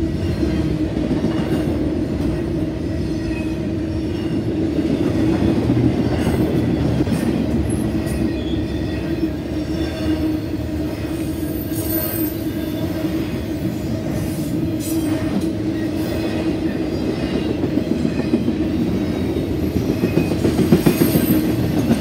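A long freight train rumbles steadily past close by.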